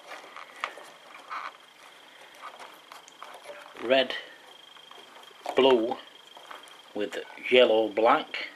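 Plastic wire connectors click and rustle as fingers handle them close by.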